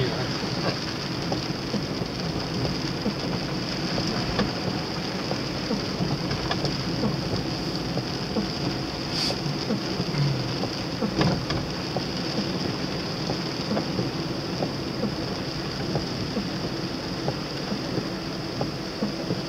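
A car engine hums as it drives along a wet road.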